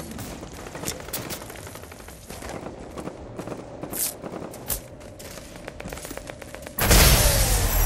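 Game footsteps patter on dirt.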